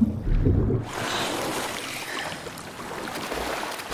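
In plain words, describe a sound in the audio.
Water sloshes and gurgles around a swimmer.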